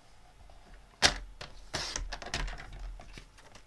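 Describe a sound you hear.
A paper trimmer blade slides and cuts through card.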